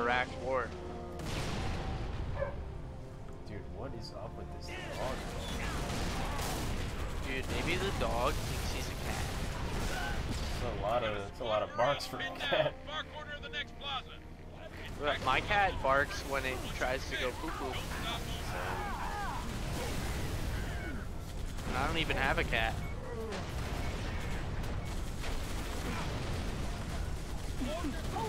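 Gunfire and explosions boom repeatedly.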